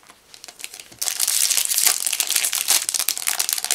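A foil booster pack crinkles and tears open.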